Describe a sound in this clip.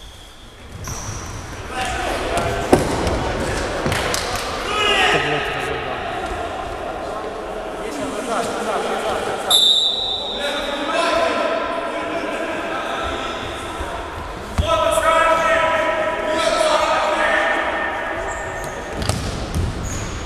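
A ball is kicked with sharp thuds in an echoing hall.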